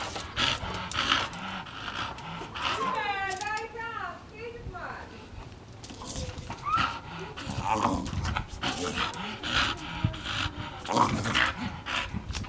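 A rope toy rustles and jerks as a dog pulls on it.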